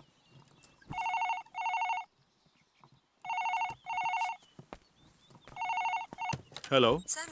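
A telephone rings in repeated bursts.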